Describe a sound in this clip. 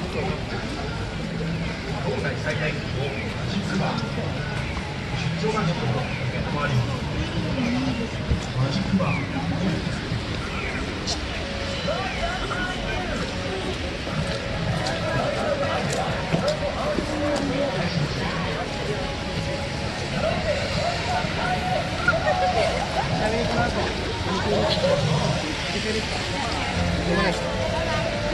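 Footsteps splash on wet pavement.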